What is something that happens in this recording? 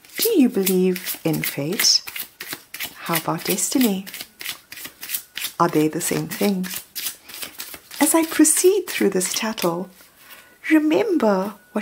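Cards are shuffled by hand with soft riffling and slapping.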